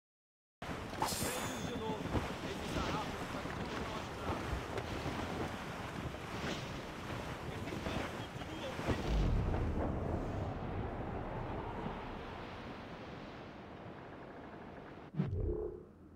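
Stormy wind and waves roar around a sailing ship.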